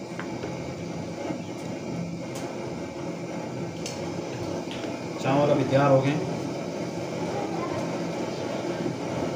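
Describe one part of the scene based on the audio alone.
Water bubbles and simmers in a pot.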